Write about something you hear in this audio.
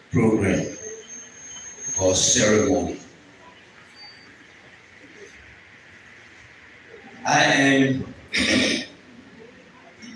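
A man speaks loudly through a microphone in short bursts, echoing in a large hall.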